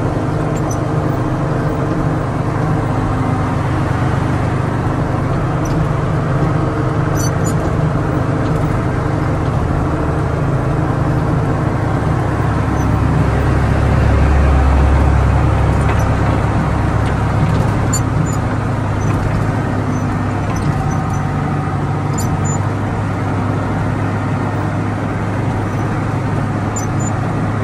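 A heavy diesel engine rumbles steadily, heard from inside the cab.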